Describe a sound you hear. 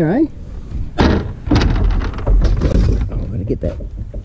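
Aluminium cans clatter and rattle as they are tipped out.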